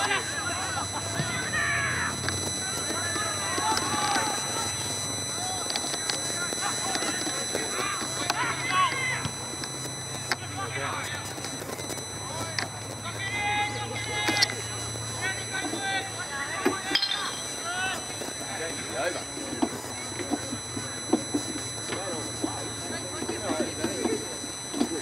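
Players shout to each other across an open field outdoors.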